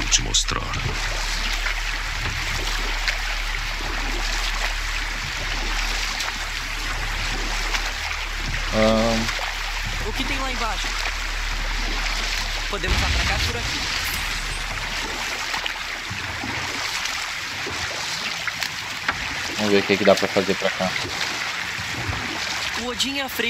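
Oars splash steadily through water as a boat is rowed.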